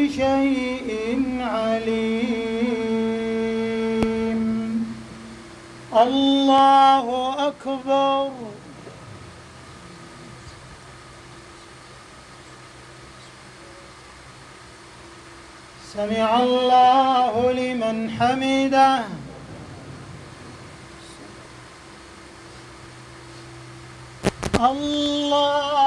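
A man chants in a long, drawn-out voice through a microphone in a large echoing hall.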